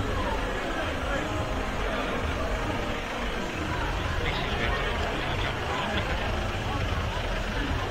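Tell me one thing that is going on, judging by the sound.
A car engine hums slowly past.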